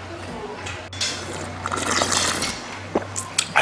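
A man slurps broth loudly from a bowl.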